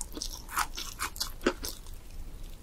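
Crispy fried batter crackles as a young woman's fingers tear it apart.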